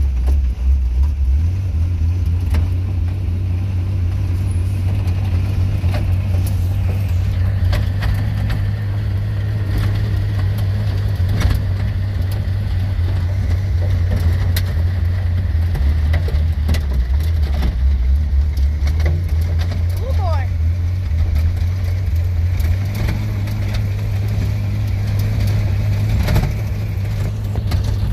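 Clods of dirt clatter against the windshield.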